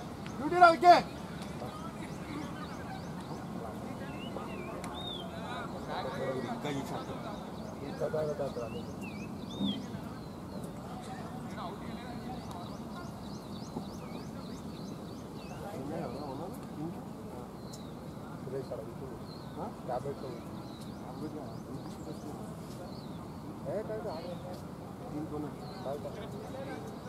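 Men shout and call out outdoors in the open.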